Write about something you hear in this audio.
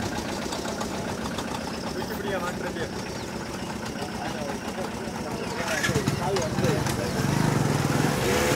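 A crowd of men talks and shouts nearby.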